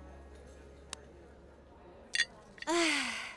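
Wooden blocks clatter as they topple.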